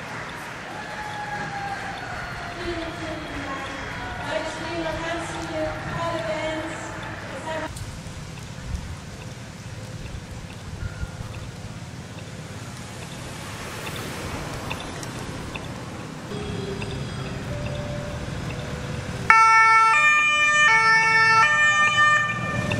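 Sirens wail loudly.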